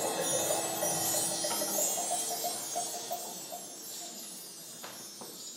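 Instruments ring out in an echoing hall, then fade.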